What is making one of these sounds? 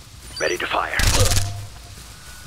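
A gun fires a loud shot nearby.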